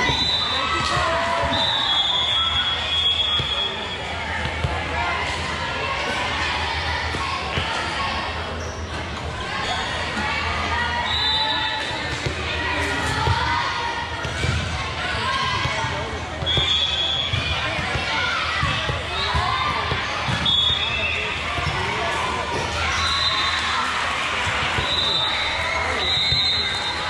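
Many young girls chatter and call out across a large echoing hall.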